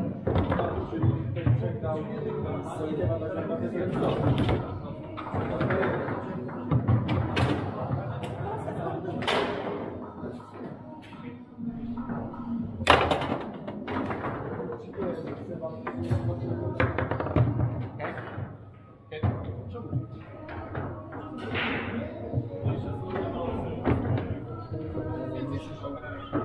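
A crowd murmurs and chatters in a busy, echoing hall.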